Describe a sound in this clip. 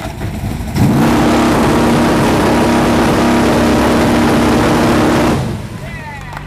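A vehicle's engine roars loudly as it speeds past.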